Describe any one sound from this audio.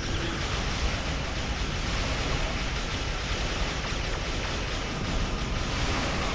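Explosions rumble steadily.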